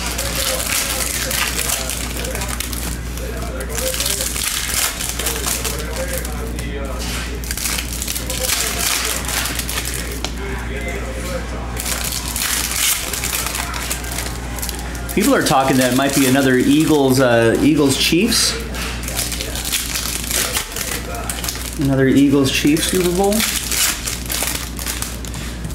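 Plastic card wrappers crinkle and rustle as they are torn open.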